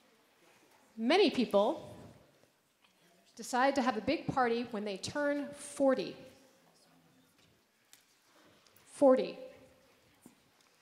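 A woman speaks through a microphone in a large echoing hall.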